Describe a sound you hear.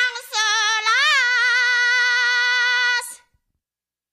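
A woman sings a long, high, wavering note that suddenly stops.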